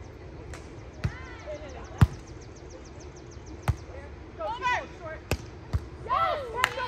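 A volleyball is struck with sharp thuds.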